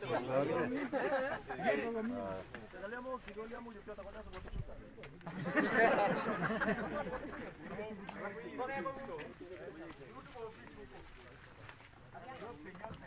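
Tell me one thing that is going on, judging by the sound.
Several men talk loudly over one another close by, outdoors.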